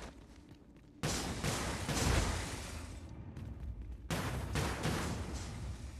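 Footsteps scuff on rocky ground.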